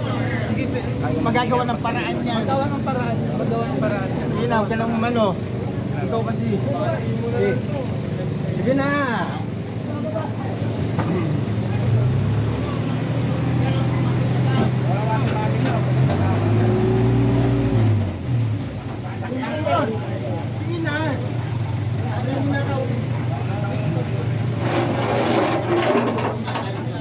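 A crowd of men and women talk over one another outdoors, close by.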